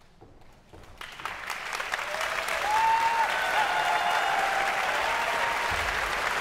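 A large audience applauds in a large concert hall.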